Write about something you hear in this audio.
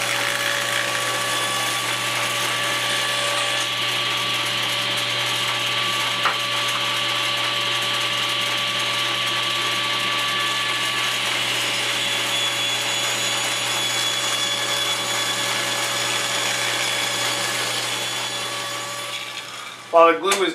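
A table saw whines steadily as it cuts wood.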